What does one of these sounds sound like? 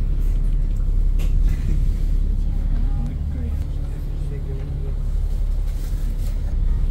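A vehicle engine rumbles low and steady throughout.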